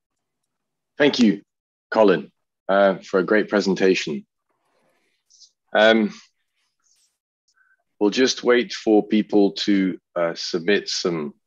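A second man speaks through an online call, in bursts with pauses.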